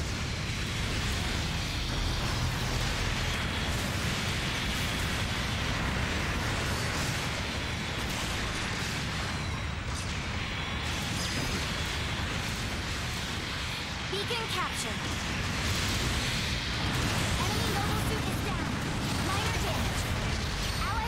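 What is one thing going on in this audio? Jet thrusters roar steadily.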